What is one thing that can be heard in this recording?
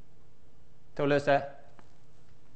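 A man speaks a few loud words.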